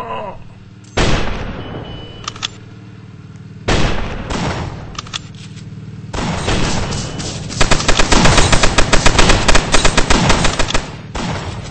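A flamethrower roars in short bursts.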